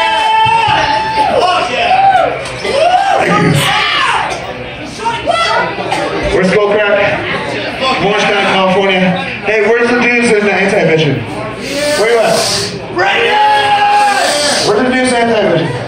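A man screams into a microphone through loud speakers.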